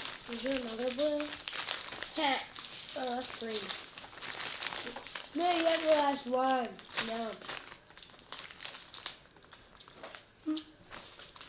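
Plastic candy wrappers crinkle and rustle.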